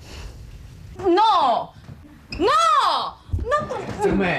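A young woman exclaims in alarm, close by.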